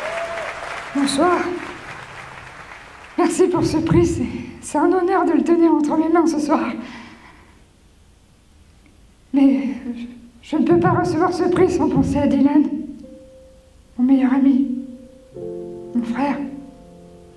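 A young man speaks into a microphone, pausing between phrases.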